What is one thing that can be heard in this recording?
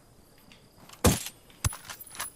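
A sniper rifle fires a single sharp shot.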